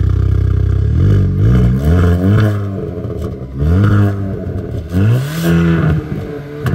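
A car engine revs sharply several times through the exhaust.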